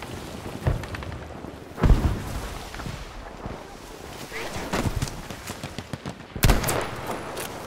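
A rifle fires loud single shots, each with a booming echo.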